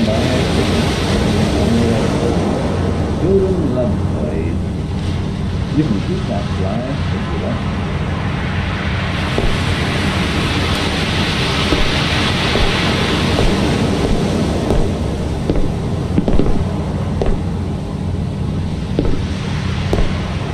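Sea water washes steadily around a boat.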